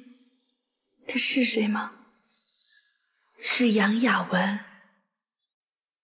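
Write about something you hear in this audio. A middle-aged woman speaks weakly.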